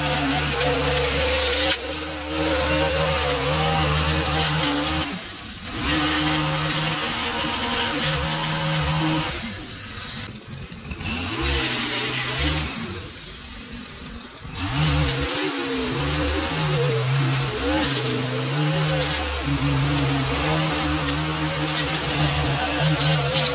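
A motorised edger whines loudly, its engine dropping and rising as it cuts.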